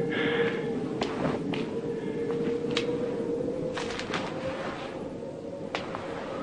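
Footsteps scuff on a stone floor.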